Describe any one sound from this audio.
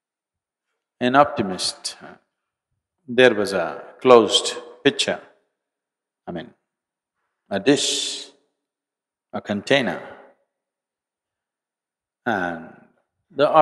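An elderly man speaks slowly and with feeling into a microphone, pausing often.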